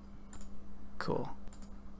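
A man speaks briefly and quietly into a close microphone.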